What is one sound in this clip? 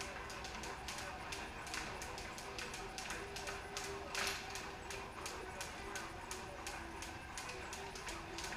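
Jump ropes slap the concrete floor in a quick, steady rhythm.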